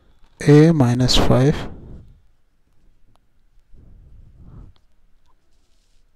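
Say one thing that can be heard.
A pen scratches on paper as it writes.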